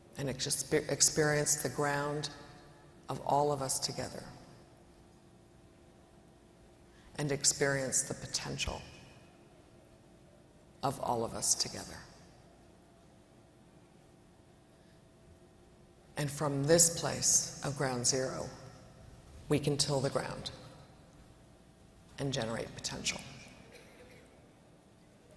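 A woman speaks calmly into a microphone, with pauses, in a large echoing hall.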